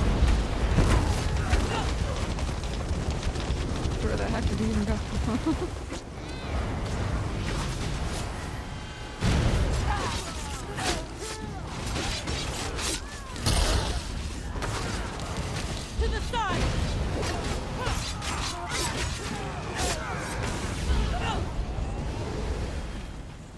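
Weapons clash and strike in a busy battle.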